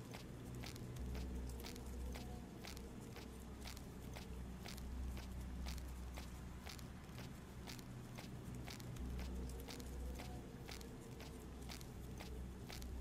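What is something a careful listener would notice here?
Footsteps thud on wooden planks and then on soft ground.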